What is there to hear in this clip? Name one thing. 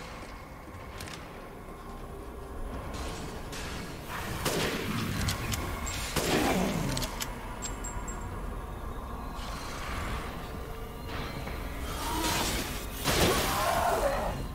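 Gunshots ring out in short bursts, echoing.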